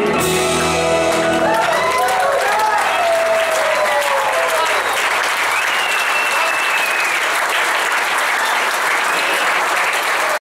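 A band plays loud rock music with electric guitars and drums.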